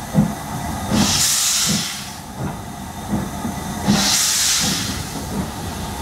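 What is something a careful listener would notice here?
Steam hisses loudly in bursts.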